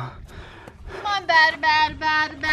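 A young child talks in a high voice.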